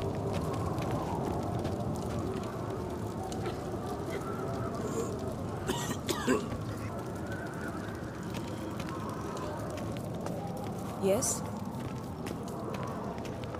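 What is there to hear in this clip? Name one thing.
Footsteps walk steadily over cobblestones.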